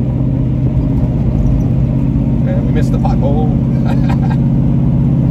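Tyres roll over pavement.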